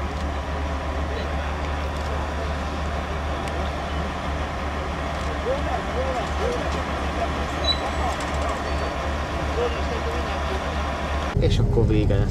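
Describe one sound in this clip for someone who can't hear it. A diesel locomotive engine rumbles steadily as the train approaches.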